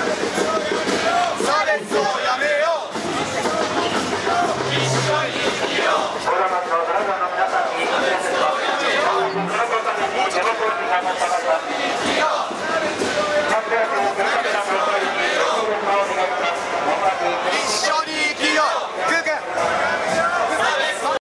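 A crowd of marchers chants loudly outdoors.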